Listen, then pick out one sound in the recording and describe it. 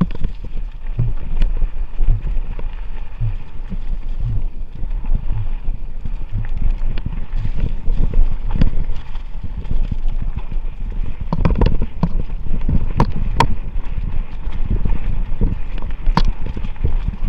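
Wind rumbles against the microphone.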